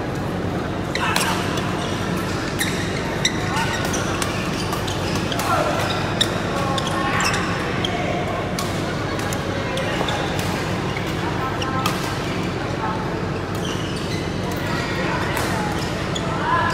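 Men call out to each other across the court.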